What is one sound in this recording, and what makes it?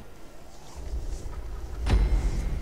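A car engine rumbles and revs.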